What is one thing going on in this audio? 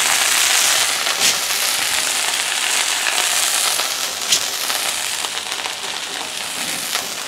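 Meat sizzles loudly in a hot pan.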